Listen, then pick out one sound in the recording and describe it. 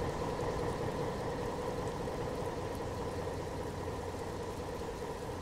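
A diesel train engine rumbles steadily.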